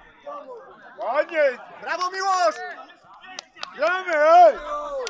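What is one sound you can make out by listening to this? A man calls out loudly close by, with a raised voice.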